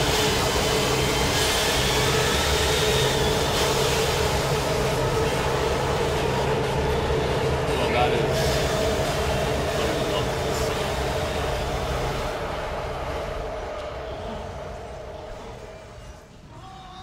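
A low mechanical hum drones steadily and slowly fades.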